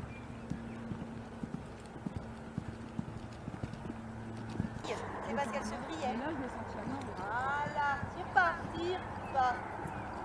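Horse hooves thud softly on sand at a trot.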